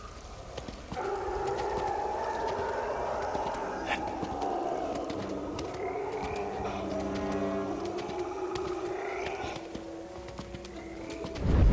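Hands and feet scrape and scuff while climbing a rough wall.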